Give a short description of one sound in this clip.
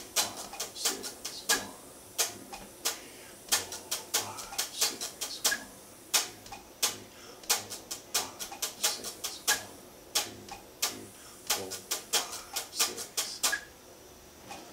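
An electric guitar plays short, sharp strummed chords.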